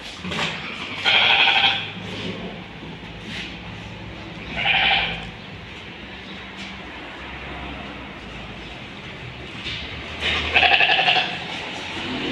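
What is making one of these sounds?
A sheep bleats.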